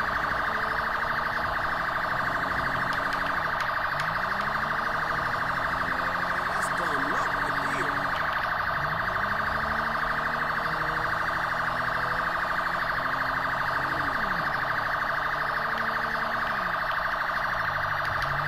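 A car engine revs up and down as it speeds along.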